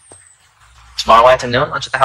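A man answers calmly at close range.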